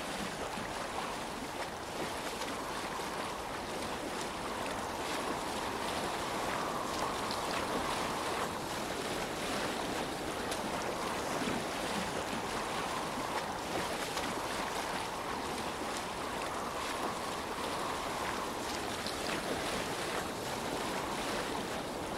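A pole pushes through water with soft splashes.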